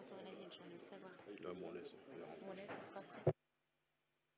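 A woman speaks softly and closely to a man.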